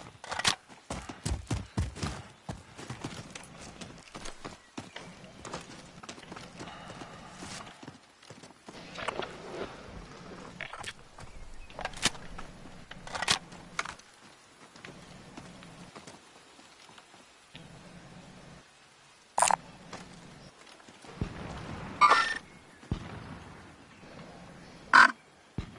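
Footsteps crunch quickly over rough ground.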